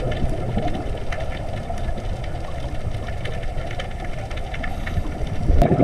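Underwater, a diver's breathing gear rumbles and bubbles steadily.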